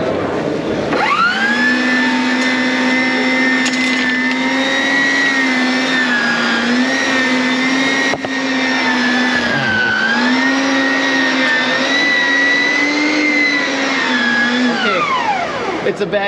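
A lawn machine engine runs with a loud, steady drone, then winds down.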